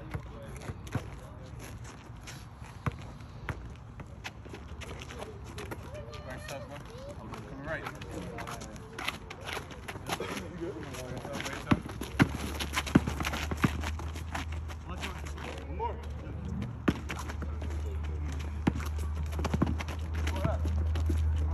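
A basketball bounces on an outdoor asphalt court.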